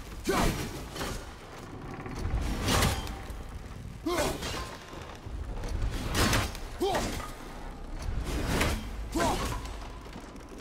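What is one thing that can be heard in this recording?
An axe whooshes through the air in repeated swings.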